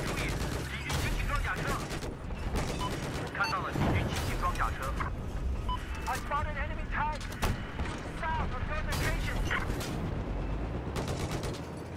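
A tank cannon fires with heavy booms.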